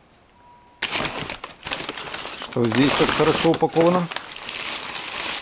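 Paper crinkles and rustles as it is pulled and unwrapped by hand.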